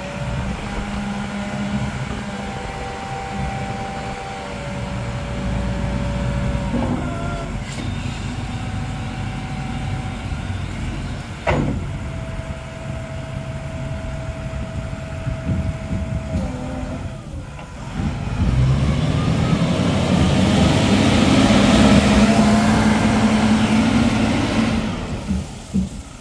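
A forklift engine idles with a steady low rumble.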